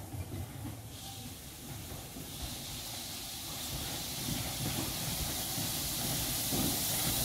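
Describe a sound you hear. Steam hisses steadily from a locomotive, growing louder.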